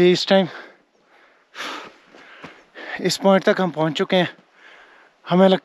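A young man talks with animation, close up.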